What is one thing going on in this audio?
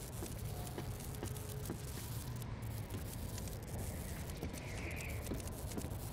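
Footsteps thud on a metal surface.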